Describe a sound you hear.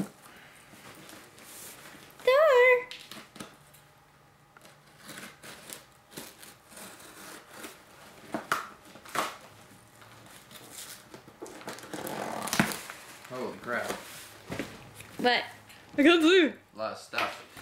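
Cardboard rips and crinkles as a box is torn open.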